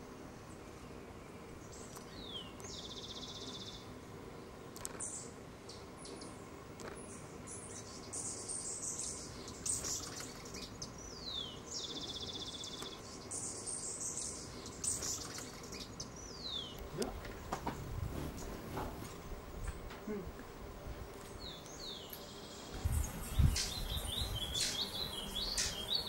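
A hummingbird's wings hum softly as it hovers.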